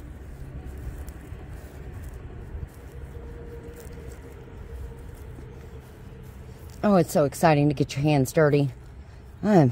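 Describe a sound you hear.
Hands press and rustle loose soil around small plants.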